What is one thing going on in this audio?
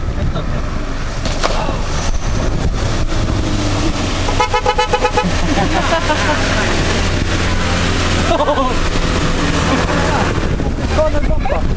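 Tyres churn and splash through muddy water.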